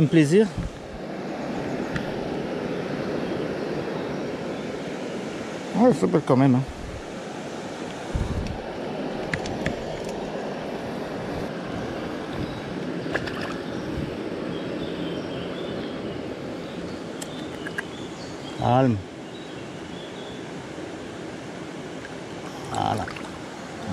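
A stream flows and babbles steadily nearby.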